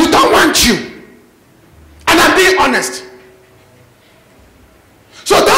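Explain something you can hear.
A man speaks loudly and with animation through a microphone, echoing in a large room.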